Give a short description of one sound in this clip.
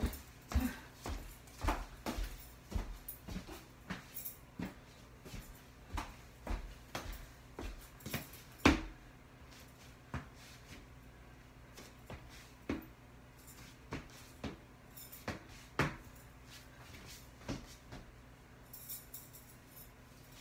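Footsteps thud and knock on a wooden floor.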